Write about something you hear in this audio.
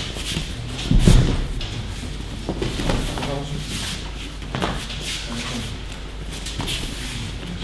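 Bodies thump onto a mat in a large echoing hall.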